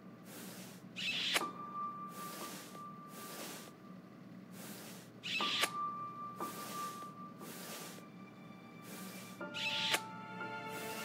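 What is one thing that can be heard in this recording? A kiss smacks up close.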